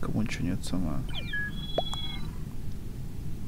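Short electronic beeps count down.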